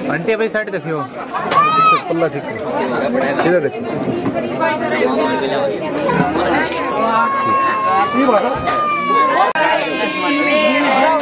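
Several women chatter and talk over one another nearby.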